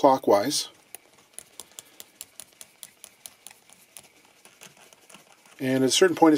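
A metal nut clicks softly as fingers spin it along a threaded bolt.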